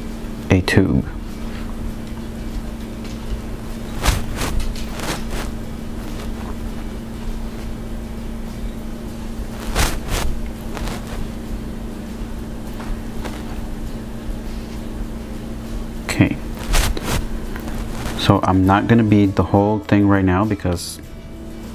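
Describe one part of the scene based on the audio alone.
Small glass beads click softly as they slide onto a needle and thread.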